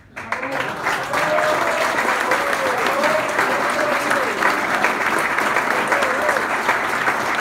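A bandoneon plays a lively melody.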